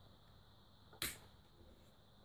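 Headphones click sharply as a part is turned into place.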